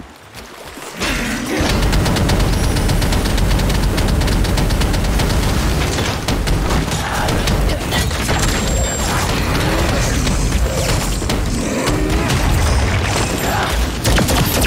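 Magic blasts and sword strikes crash and crackle in quick succession.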